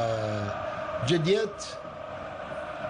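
A young man shouts with excitement.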